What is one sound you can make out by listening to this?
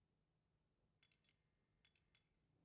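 Light footsteps patter on a wooden floor.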